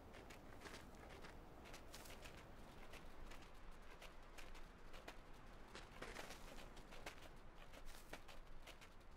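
Light footsteps patter quickly over the ground.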